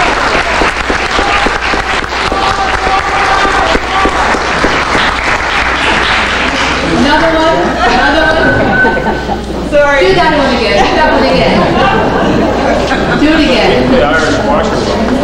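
An audience claps and applauds in a hall.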